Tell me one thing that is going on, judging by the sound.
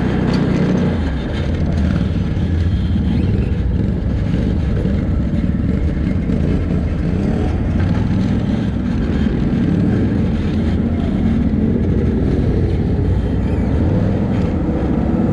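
A quad bike engine rumbles steadily close by as it drives over rough dirt.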